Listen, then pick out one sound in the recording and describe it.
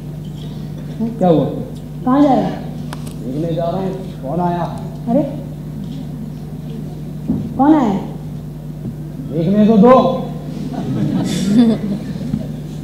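A woman speaks loudly and emotionally, heard through a microphone in a large room.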